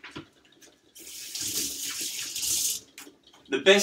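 Water runs briefly from a tap into a sink.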